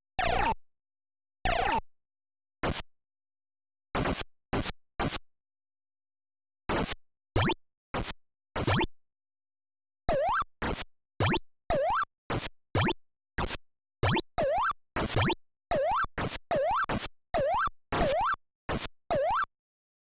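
A computer game plays short electronic blips in quick bursts.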